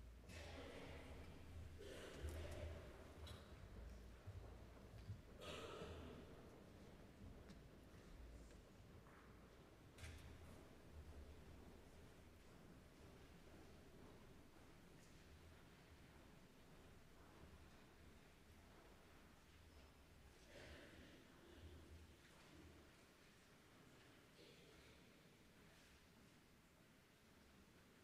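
A young choir sings softly in a large echoing hall.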